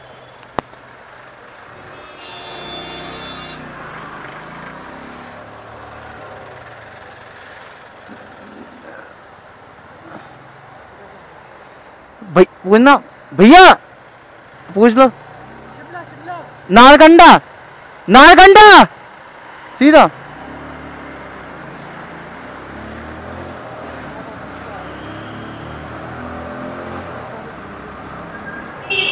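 A motorcycle engine hums steadily while riding through traffic.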